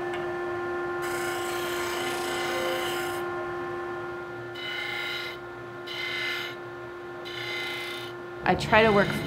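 Wood grinds against a spinning sanding disc in short bursts.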